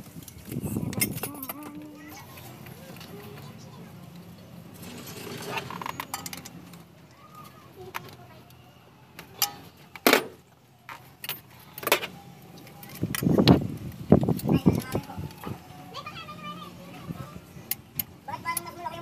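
Metal parts clink and tap against an engine.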